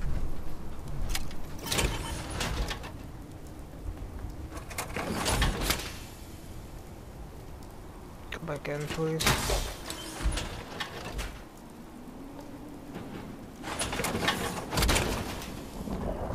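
Heavy metal armor clanks and hisses as it opens and closes.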